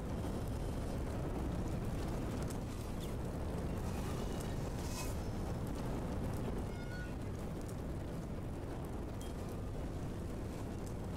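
A low, steady rumbling hum drones throughout.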